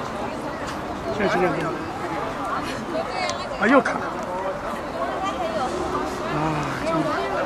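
A crowd of adults chatters nearby outdoors.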